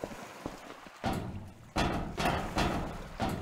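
Footsteps clatter loudly on a metal grating.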